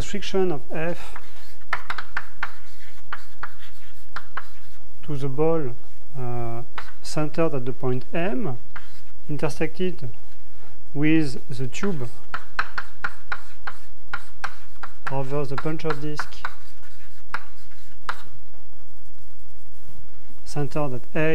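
A young man speaks calmly, as if lecturing, heard through a microphone.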